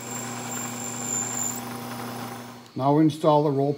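A milling machine spindle whirs steadily as it cuts metal.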